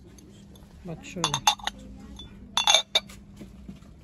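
A glass lid clinks against a glass dish.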